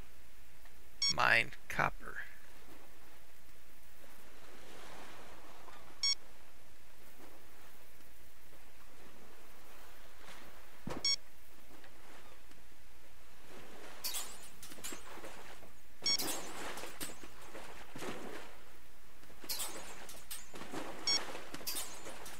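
A metal detector gives short high beeps every few seconds.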